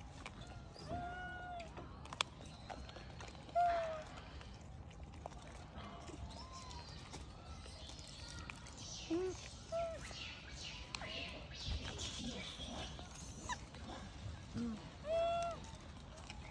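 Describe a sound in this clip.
A baby macaque gives short, high squeaks.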